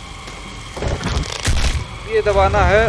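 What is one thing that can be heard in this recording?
A monster is torn apart with a loud, wet crunch.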